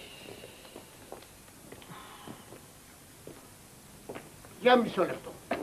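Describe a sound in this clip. Footsteps shuffle on a hard outdoor floor.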